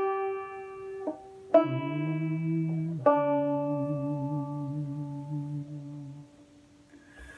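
A banjo is plucked, with notes ringing out close by.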